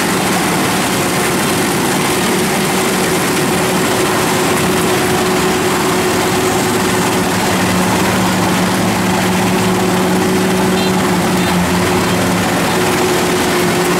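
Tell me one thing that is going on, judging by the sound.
A harvester engine drones steadily close by.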